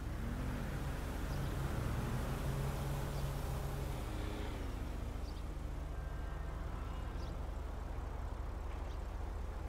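Vehicles drive past nearby.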